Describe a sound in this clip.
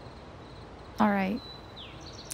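A young woman speaks a short line.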